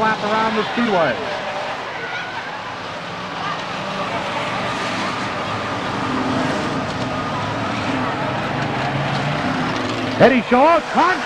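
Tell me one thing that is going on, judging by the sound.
Car engines roar as cars race past.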